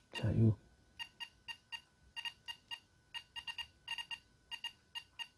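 An electronic charger beeps quickly and repeatedly as its buttons are pressed.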